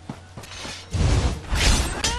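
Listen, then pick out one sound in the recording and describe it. A magic spell bursts with a loud whoosh.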